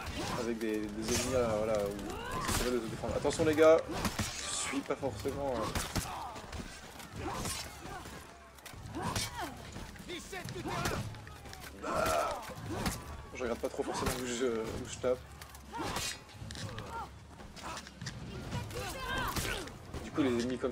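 Steel swords clash and clang in a close fight.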